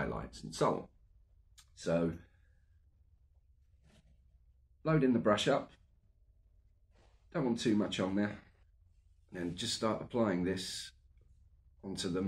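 A middle-aged man talks calmly and close by, in short phrases with pauses.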